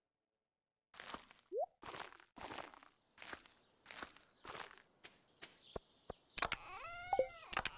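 Soft footsteps patter on dirt.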